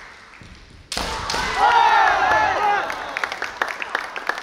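Two fencers let out loud, high shouts in a large echoing hall.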